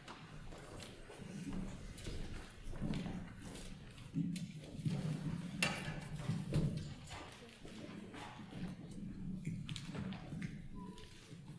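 Footsteps knock on a wooden stage in a large echoing hall.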